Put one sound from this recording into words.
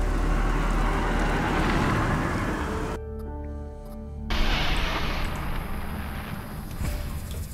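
A magical whooshing rushes and then fades.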